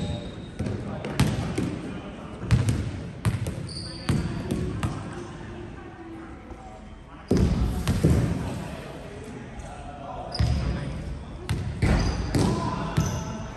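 Volleyballs are struck by hands and bounce on a wooden floor in a large echoing hall.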